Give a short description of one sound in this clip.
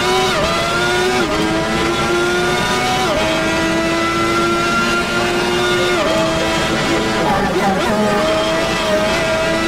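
A racing car engine screams at high revs, dropping briefly with each gear change.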